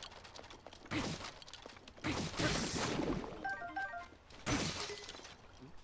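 A weapon strikes and clangs with bright impacts.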